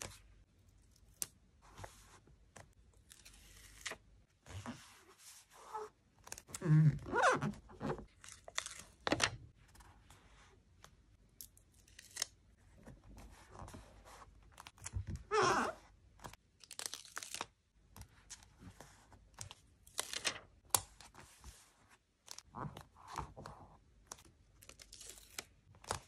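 Paper stickers rustle and crinkle as fingers handle them.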